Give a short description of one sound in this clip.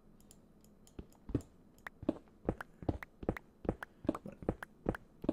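Blocks break with quick, repeated clicks.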